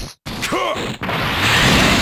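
An energy blast bursts with a loud roaring whoosh.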